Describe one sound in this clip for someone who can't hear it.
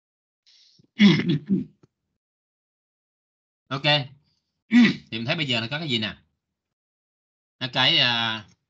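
A young man speaks calmly through a microphone in an online call, in short bursts.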